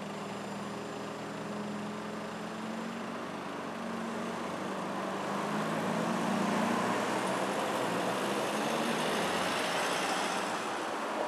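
A car engine hums close by.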